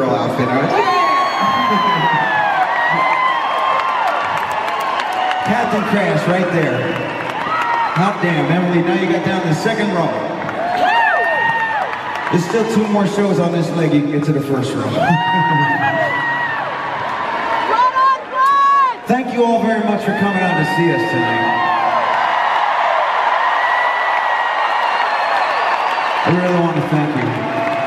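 A man sings into a microphone through loud speakers in a large echoing hall.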